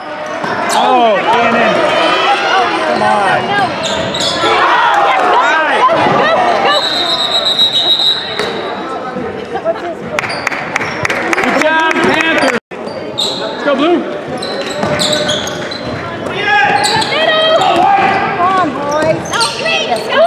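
Spectators shout and cheer close by in an echoing hall.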